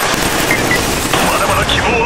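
A rifle fires rapid bursts of gunfire.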